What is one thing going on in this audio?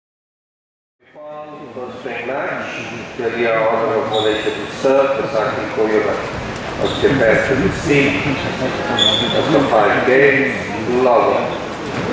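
A crowd of spectators chatters.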